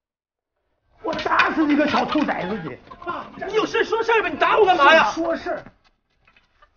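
An elderly man shouts angrily.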